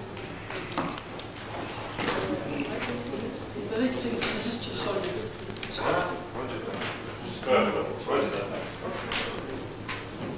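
A middle-aged man speaks with animation in a large echoing hall.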